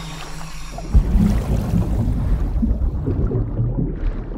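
Muffled underwater bubbling and rumbling.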